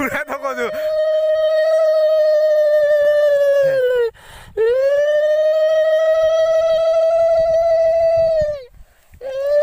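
A young man sings long, drawn-out notes loudly and close by.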